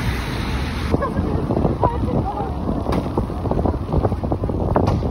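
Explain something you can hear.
Wind blows outdoors by open water.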